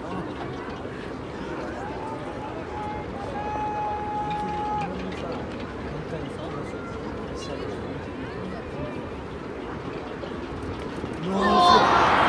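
A stadium crowd murmurs outdoors.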